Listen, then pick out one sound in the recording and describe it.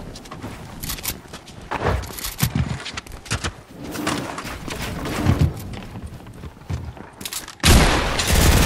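Building pieces snap into place with quick, clattering clicks.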